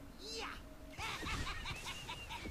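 Magic spell effects chime and crackle rapidly during a fight.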